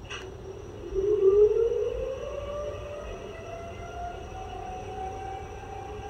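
A model locomotive's motor whines and rises in pitch as it pulls away.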